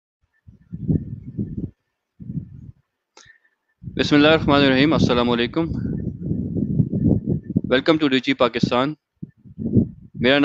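A man speaks calmly through a headset microphone, as if on an online call.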